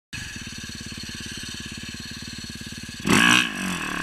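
A dirt bike engine putters steadily up close.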